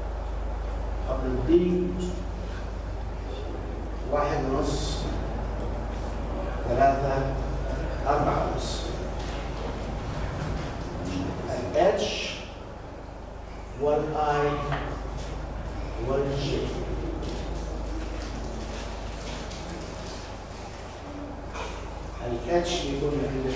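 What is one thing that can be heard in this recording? A man speaks calmly, pausing between phrases.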